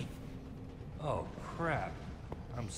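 A young man speaks apologetically.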